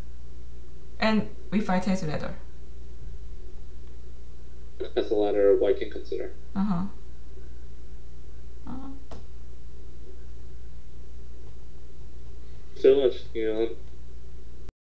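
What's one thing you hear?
A young woman speaks calmly into a microphone, in short bursts.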